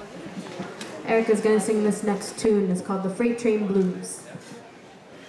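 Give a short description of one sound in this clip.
A woman sings close into a microphone.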